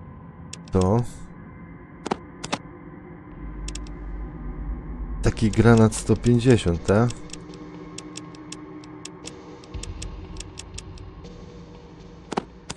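Short clicks from a game's menu sound as items are moved.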